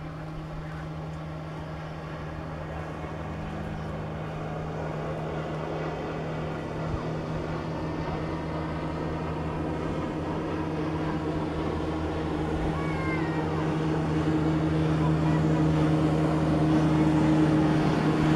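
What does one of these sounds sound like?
A motorboat engine drones steadily, growing louder as it approaches.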